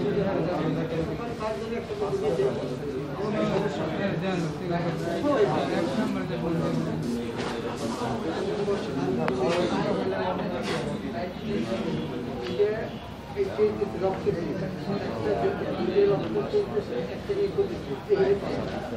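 Several men talk nearby in an indoor room.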